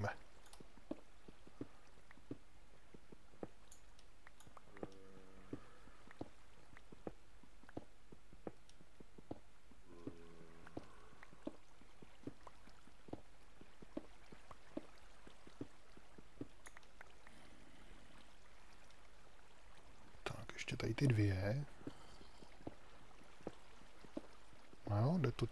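Footsteps tap steadily on stone.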